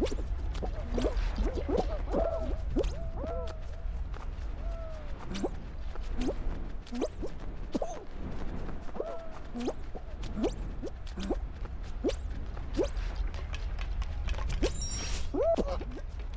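Playful cartoon sound effects pop and chirp.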